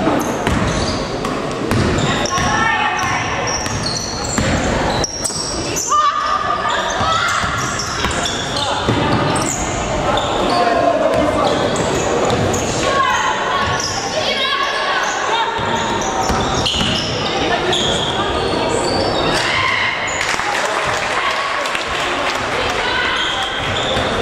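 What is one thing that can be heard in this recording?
Young women shout and call out to each other across the hall.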